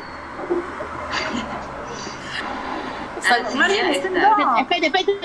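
Women laugh over an online call.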